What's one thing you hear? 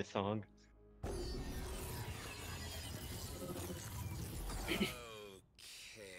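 A loud magical blast roars and whooshes.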